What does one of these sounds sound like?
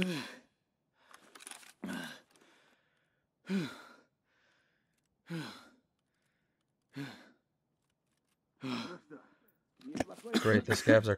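A young man speaks into a close microphone in short bursts.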